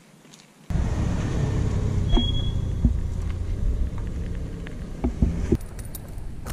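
A fuel valve on a motorcycle clicks as it is turned by hand.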